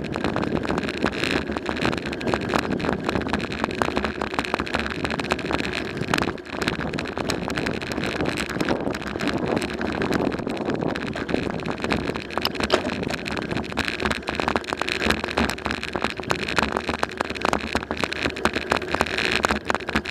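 Tyres roll steadily over a paved road.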